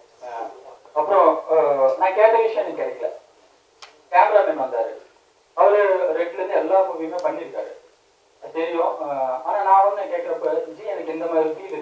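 A young man speaks calmly into a microphone over a loudspeaker.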